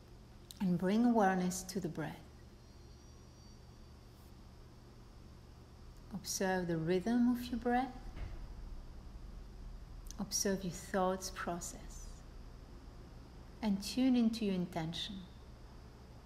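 A woman speaks slowly and calmly in short phrases, with long pauses.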